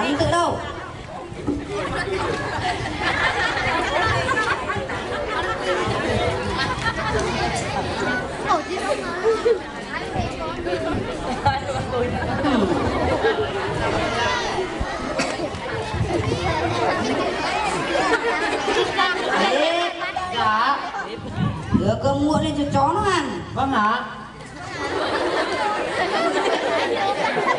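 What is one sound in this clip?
Young children speak over microphones, heard through loudspeakers outdoors.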